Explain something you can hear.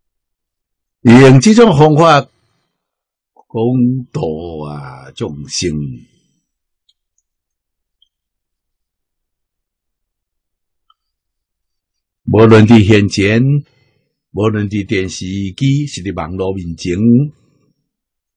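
An elderly man speaks calmly and clearly into a close microphone, with pauses.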